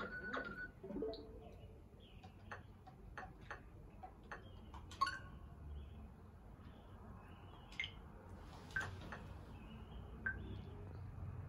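Short menu blips and clicks sound from a game console.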